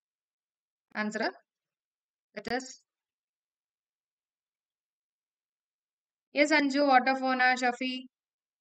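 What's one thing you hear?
A young woman speaks calmly and clearly into a close microphone, in short bursts with pauses.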